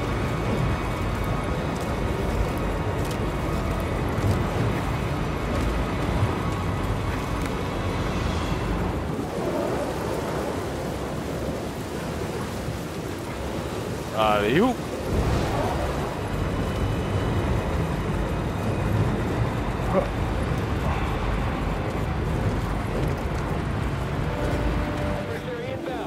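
Wind blows steadily outdoors.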